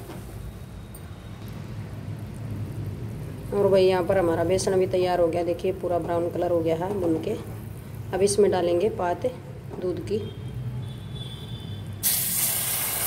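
A wooden spatula stirs a thick mixture in a pan.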